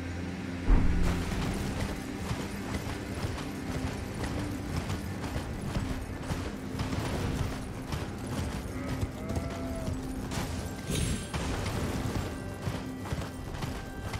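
Hooves gallop over snow at a steady pace.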